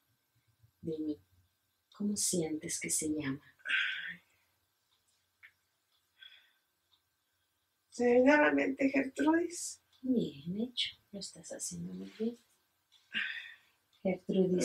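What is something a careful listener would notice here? A middle-aged woman speaks softly and calmly close by.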